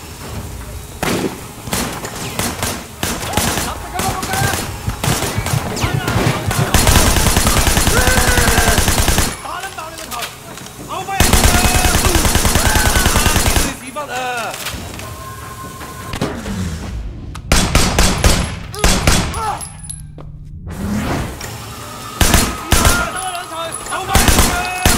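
Automatic guns fire in rapid, loud bursts.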